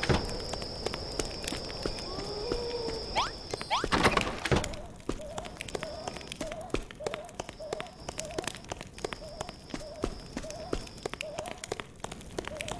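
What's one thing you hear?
Footsteps tap quickly and evenly on stone.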